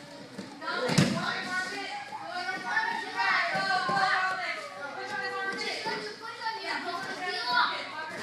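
Bodies thud onto padded mats.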